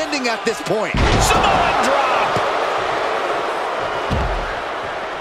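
A body slams heavily onto a wrestling mat with a thud.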